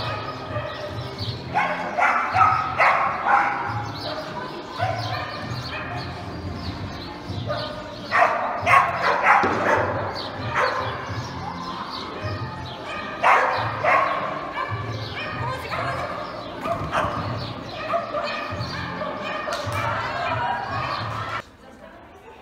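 A woman calls out commands to a dog with animation.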